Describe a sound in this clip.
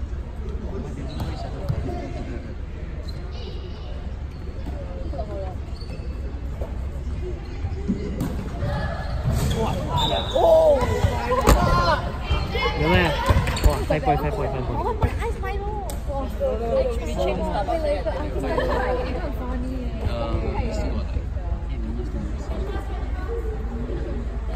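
Young women call out and chatter in a large echoing hall.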